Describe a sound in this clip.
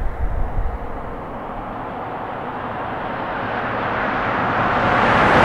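A car approaches along a road, growing louder.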